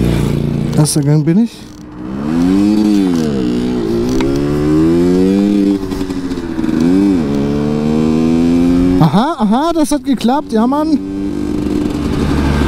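A motorcycle engine rises and falls in pitch.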